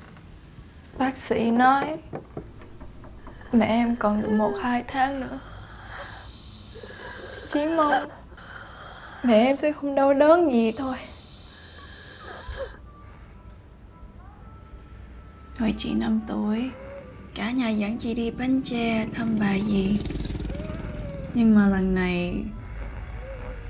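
A young woman speaks softly and calmly nearby.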